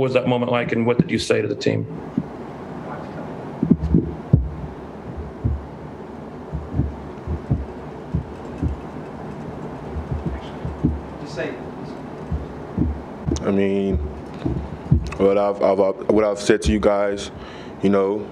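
A young man speaks calmly into a microphone, with pauses.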